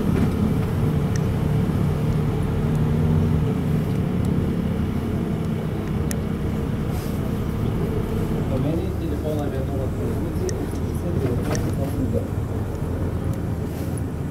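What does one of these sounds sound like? A vehicle engine rumbles steadily, heard from inside the cab.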